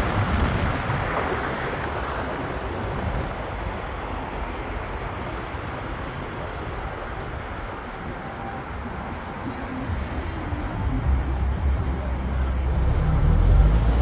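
A car drives along an asphalt road, heard from inside.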